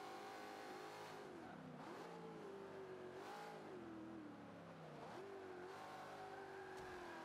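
A car engine roars, revving up and dropping with each gear change.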